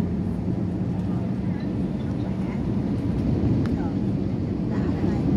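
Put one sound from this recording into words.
An airplane's engines drone with a steady, deep roar.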